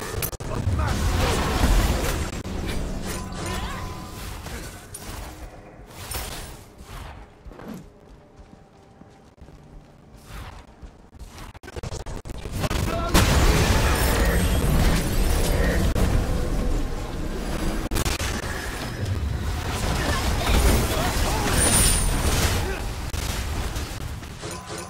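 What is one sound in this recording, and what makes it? Magic spells whoosh and crackle in a video game.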